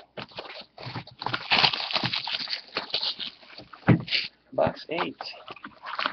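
Cardboard boxes are set down on a table with a soft thump.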